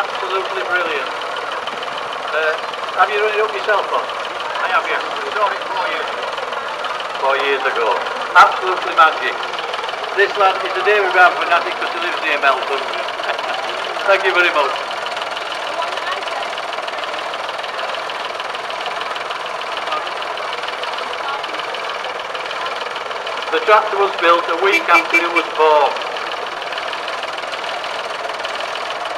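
Tractor engines rumble steadily nearby.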